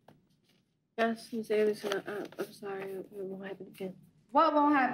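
A teenage girl speaks softly and wearily.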